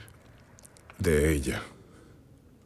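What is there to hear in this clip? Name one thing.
A man speaks briefly and firmly, close by.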